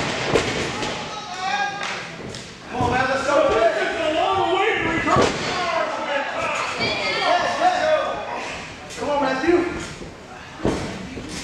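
A crowd shouts and cheers.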